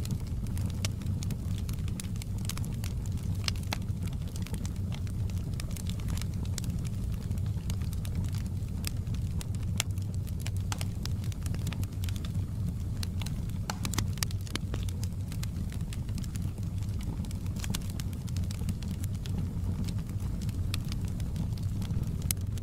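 A log fire roars steadily.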